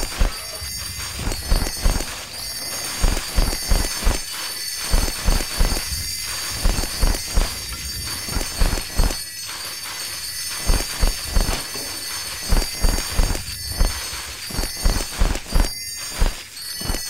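Short cheerful chimes ring out as items are collected.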